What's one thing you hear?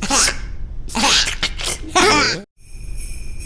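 A cartoon character speaks with animation in a high, squeaky voice.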